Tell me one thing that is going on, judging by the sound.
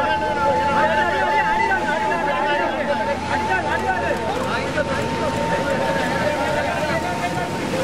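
A crowd of men shout and call out to each other close by.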